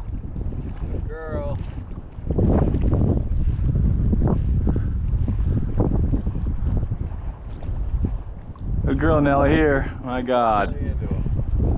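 Ducks call out across the water.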